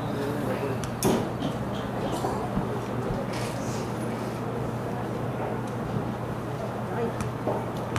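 Players shout to one another across an open field.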